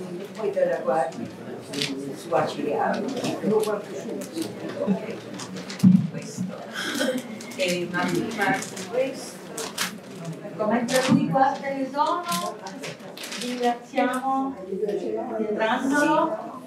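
A man and a woman talk with animation in an echoing hall.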